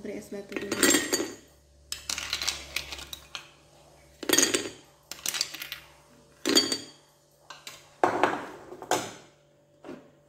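Ice cubes clatter and clink into a glass bowl.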